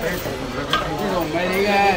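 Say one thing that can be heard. A cleaver knocks on a wooden chopping board.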